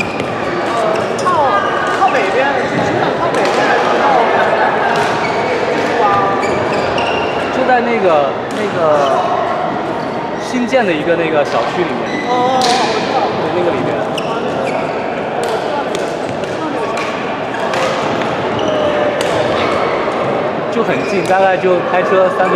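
Rackets smack shuttlecocks in sharp pops, echoing around a large hall.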